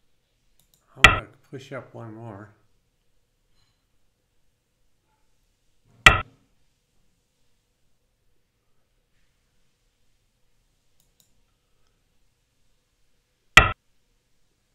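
A game stone clicks sharply onto a board.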